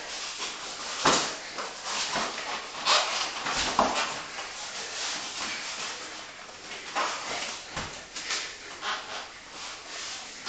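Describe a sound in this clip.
Two men breathe heavily with effort.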